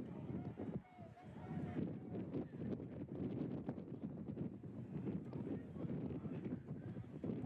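A crowd of spectators cheers and shouts across an open field.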